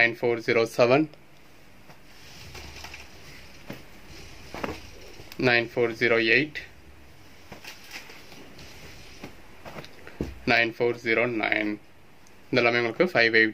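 Folded cloth rustles softly as hands handle it.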